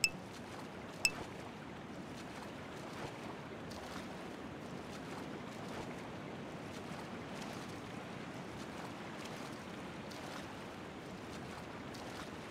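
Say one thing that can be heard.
Water splashes softly with steady swimming strokes.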